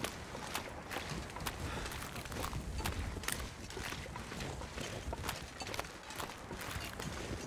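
Footsteps crunch through snow at a steady walking pace.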